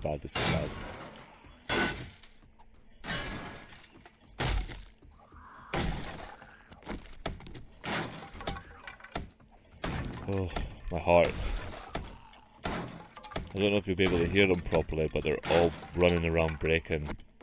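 Heavy blows strike a wooden door again and again.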